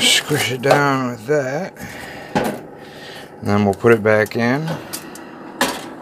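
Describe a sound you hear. A foil pan crinkles and rustles.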